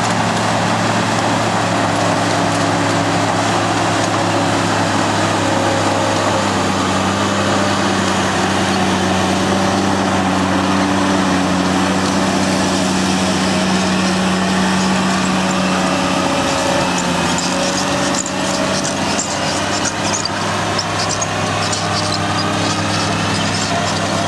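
A heavy diesel engine rumbles loudly and steadily close by.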